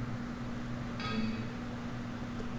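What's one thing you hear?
A short computer alert chime sounds.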